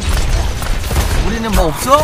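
An explosion booms in the game.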